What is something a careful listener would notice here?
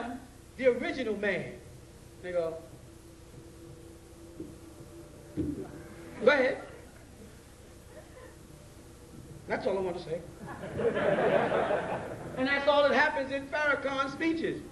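A man speaks forcefully into a microphone in a large echoing hall, with long pauses.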